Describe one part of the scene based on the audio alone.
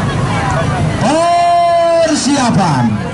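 A child calls out loudly with a long held shout.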